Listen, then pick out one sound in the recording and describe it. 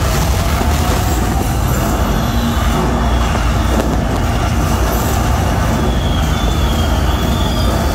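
Fireworks crackle and pop overhead.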